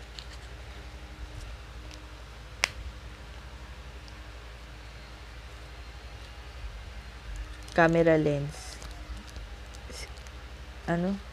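A plastic packet crinkles in hands.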